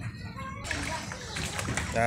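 A stick pokes and splashes in shallow water.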